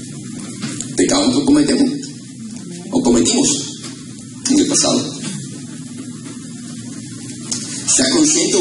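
A man preaches with fervour through a microphone and loudspeakers in an echoing hall.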